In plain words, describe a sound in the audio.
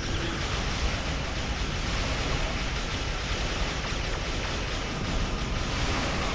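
Laser beams fire in rapid bursts.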